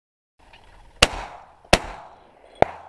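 A shotgun fires two loud shots outdoors.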